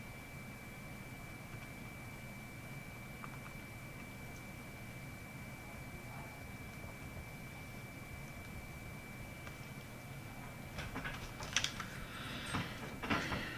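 Calculator keys click as they are pressed.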